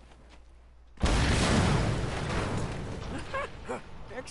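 A loud explosion booms and slowly rumbles away.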